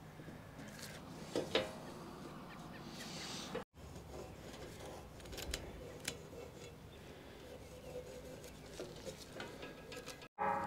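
A metal rule knocks and clatters against a steel plate.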